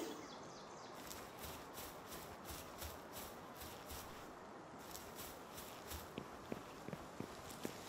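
Footsteps patter steadily through grass and over stone.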